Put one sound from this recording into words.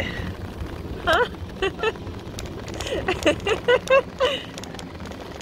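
A young woman laughs and giggles close by.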